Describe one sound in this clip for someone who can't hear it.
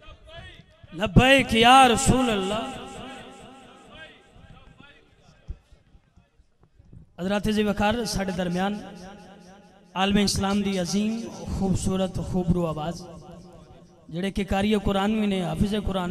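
A man sings loudly into a microphone through loudspeakers, with echo.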